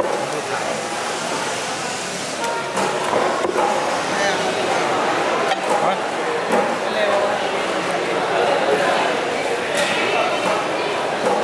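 A knife slices through soft fish on a wooden block.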